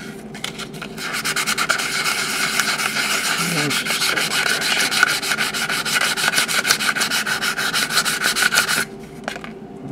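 Sandpaper rubs rapidly back and forth over metal.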